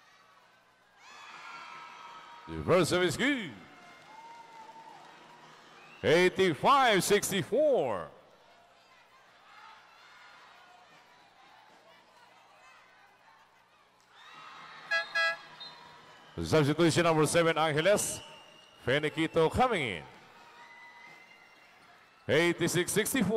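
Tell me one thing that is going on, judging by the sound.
A large crowd cheers and roars in an echoing hall.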